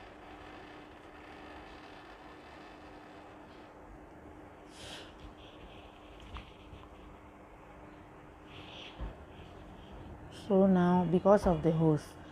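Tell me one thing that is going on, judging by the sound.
Fabric rustles softly as hands fold and handle it.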